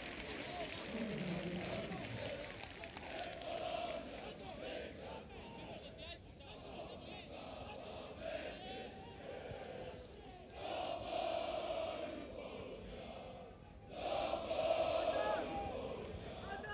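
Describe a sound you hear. A large stadium crowd chants and cheers loudly outdoors.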